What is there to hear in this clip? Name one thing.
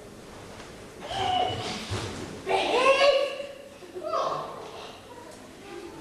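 A girl speaks with animation on a stage, heard from a distance.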